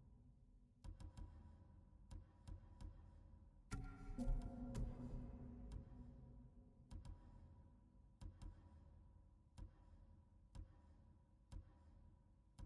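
Short menu clicks tick as selections change.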